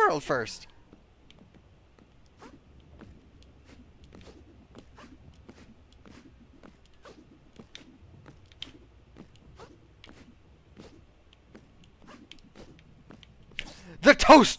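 Quick light footsteps patter across a floor.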